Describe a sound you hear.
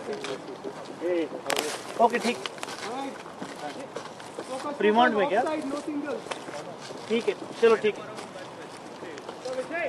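Men call out to each other across an open field at a distance.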